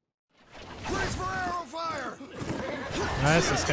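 A horse snorts close by.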